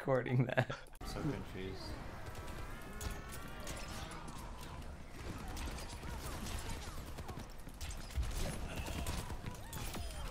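Weapons fire in a video game.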